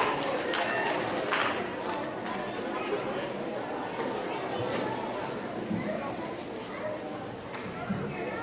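A group of children murmurs and chatters in a large hall.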